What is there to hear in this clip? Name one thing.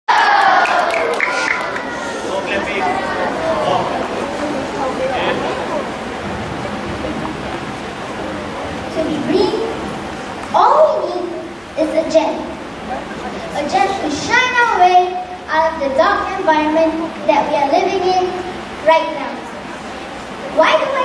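A young woman speaks with animation into a microphone, heard through loudspeakers in a large echoing hall.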